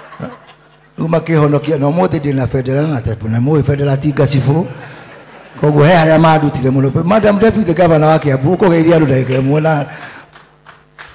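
A man sings with feeling into a microphone, heard over loudspeakers.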